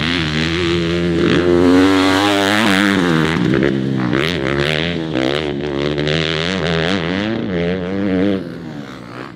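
A dirt bike engine revs loudly, its pitch rising and falling.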